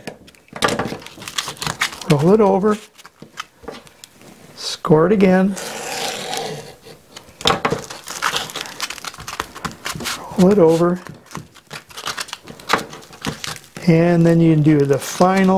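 Fingers rub and press tape down onto a wooden surface.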